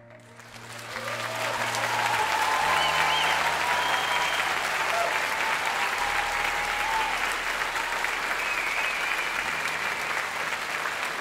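A large children's choir cheers and shouts.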